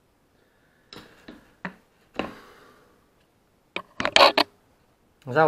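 Metal parts knock and clink against a wooden table.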